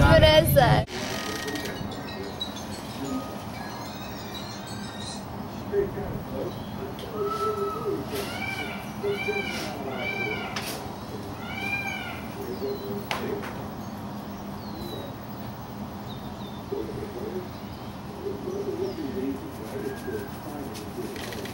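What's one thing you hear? A peacock rattles its fanned tail feathers.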